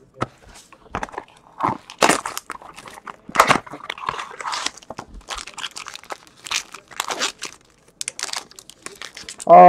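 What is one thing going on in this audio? A foil card wrapper crinkles and tears as hands open it.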